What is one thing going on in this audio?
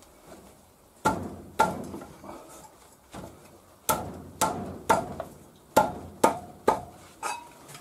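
A metal wrench clinks and clanks against a wheel's axle nut.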